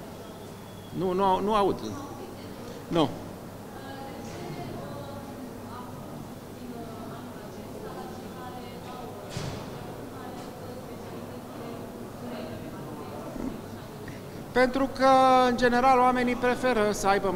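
A middle-aged man speaks calmly and close into microphones.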